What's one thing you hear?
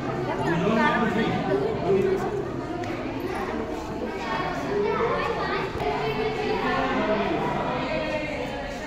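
Men and women chat nearby in a reverberant hall.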